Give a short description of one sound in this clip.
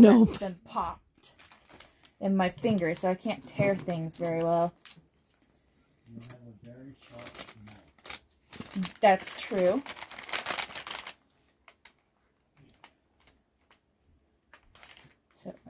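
A paper packet crinkles and rustles in hands.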